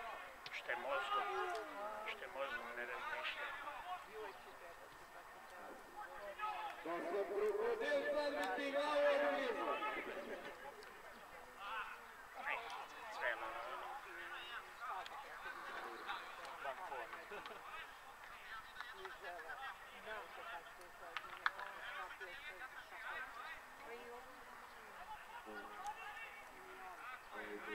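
Football players shout and call to each other across an open field.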